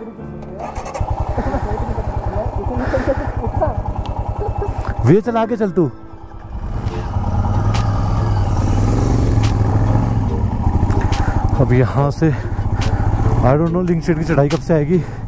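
A motorcycle engine thumps steadily up close.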